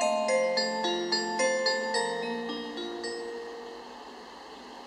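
Clock bells chime a short tune outdoors and ring out.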